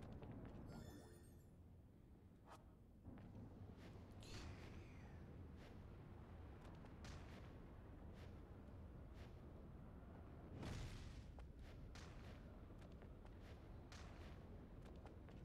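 Video game sound effects whoosh and clatter.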